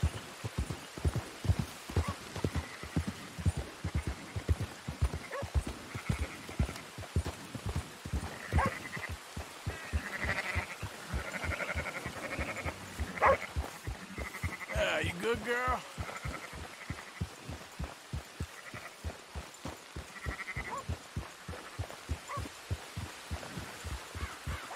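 A horse's hooves thud steadily at a trot on a dirt path.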